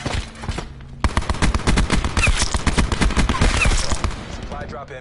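A sniper rifle fires in a video game.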